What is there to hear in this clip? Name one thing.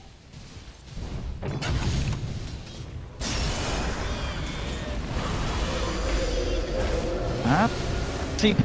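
Fiery magic blasts whoosh and crackle in a fight.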